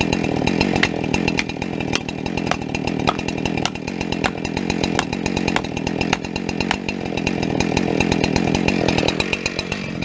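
Dry branches crack and snap underfoot.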